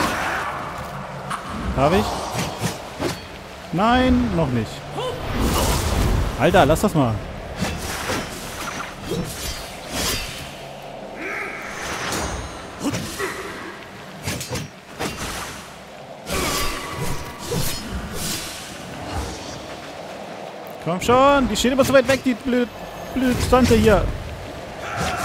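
Quick blows and sharp impacts land again and again in a fight.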